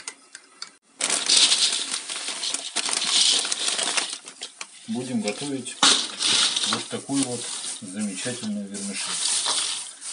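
A thin plastic bag crinkles and rustles in hand.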